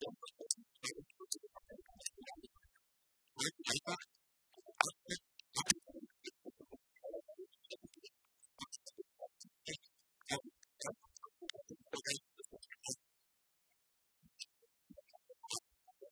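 Laptop keys click as people type.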